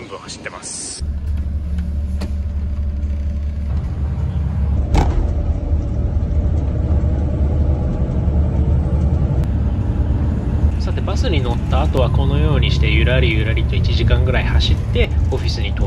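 A bus engine rumbles low and steadily.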